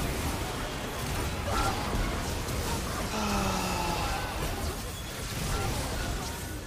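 Video game spell effects whoosh and clash in a busy fight.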